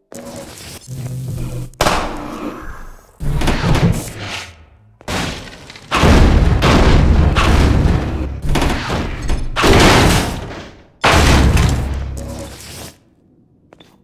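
Wooden crates crash and clatter in loud bursts.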